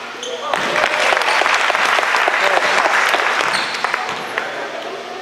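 A crowd of young players cheers and shouts in a large echoing gym.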